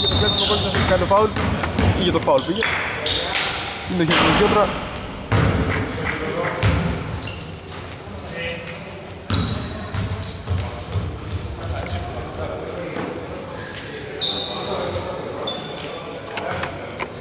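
Male players shout and call to each other across an echoing hall.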